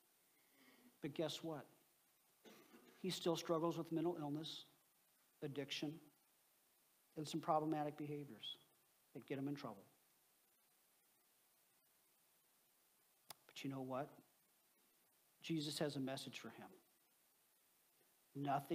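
A middle-aged man speaks calmly through a microphone in pauses, in a large echoing hall.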